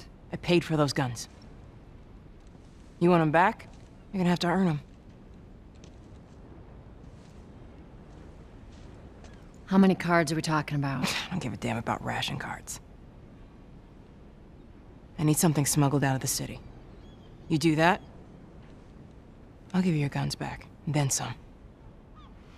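A woman speaks calmly and firmly, close by.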